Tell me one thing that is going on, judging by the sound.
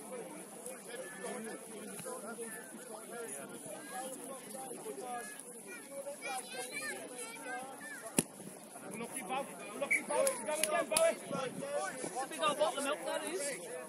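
Men and women on the sideline chat and call out outdoors.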